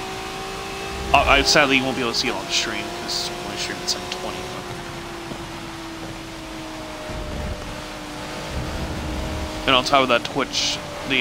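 A race car engine drones steadily at high revs.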